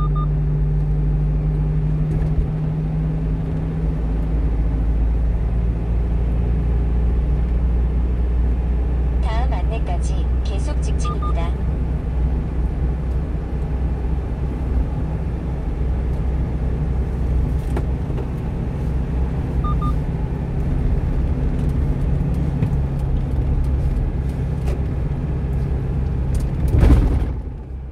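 Tyres roll on the road with a low steady rumble.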